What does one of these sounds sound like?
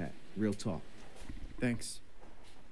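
A young man briefly answers.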